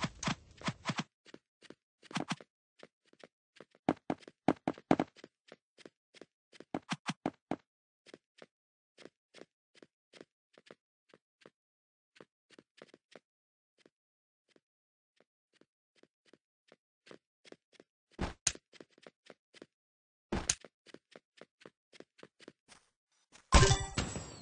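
Quick footsteps tap on stone.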